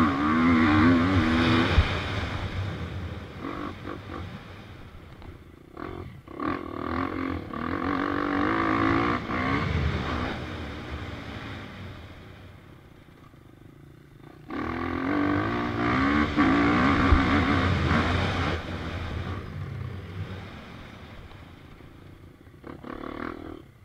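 A dirt bike engine revs hard up close, rising and falling as it shifts gears.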